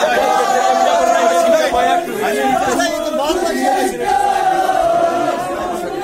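A crowd of men shout and argue loudly close by.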